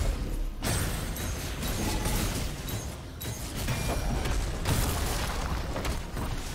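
Game combat effects clash and burst rapidly.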